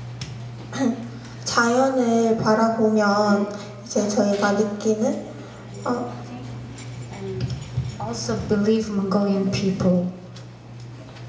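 A young woman speaks softly into a microphone, heard through a loudspeaker.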